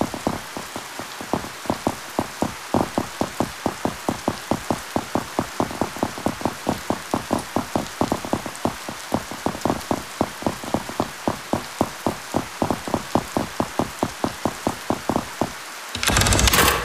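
Quick footsteps run over stone paving.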